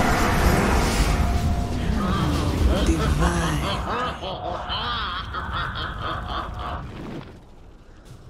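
Fiery spell effects roar and crackle in a game battle.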